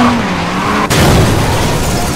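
A car crashes with a loud smash and scattering debris.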